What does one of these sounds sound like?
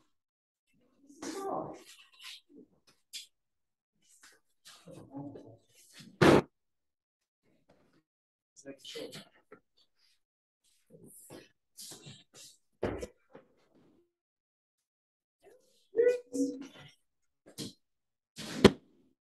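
Bodies thump onto a padded mat in sharp, heavy falls.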